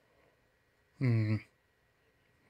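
A man gives a short hum close to a microphone.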